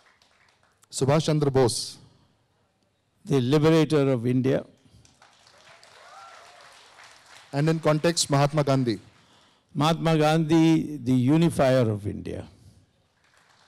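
An elderly man speaks calmly into a microphone, heard through loudspeakers.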